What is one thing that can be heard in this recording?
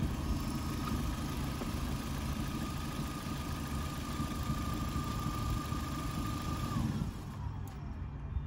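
A tyre inflator pump hums loudly and then winds down.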